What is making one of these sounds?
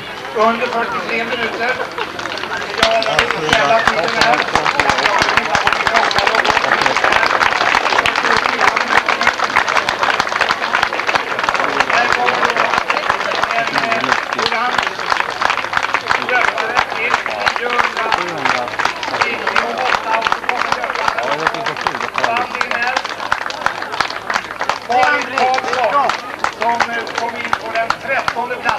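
Men and women in the crowd chatter and call out nearby.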